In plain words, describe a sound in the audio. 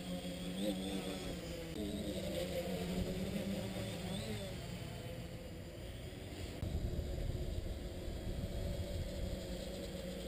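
A quadcopter's electric motors whine as it hovers overhead.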